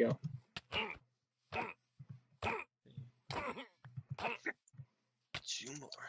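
A sword strikes a creature several times with sharp thuds.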